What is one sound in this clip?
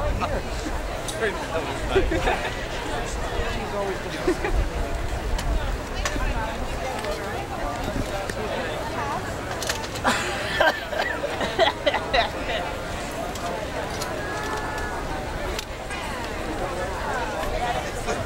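A large outdoor crowd chatters all around, close by and far off.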